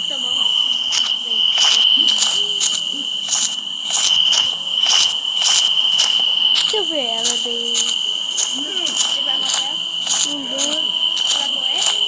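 Footsteps crunch on dry leaves at a steady pace.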